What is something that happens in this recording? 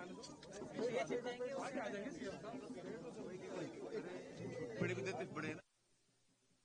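Several men talk over one another close by.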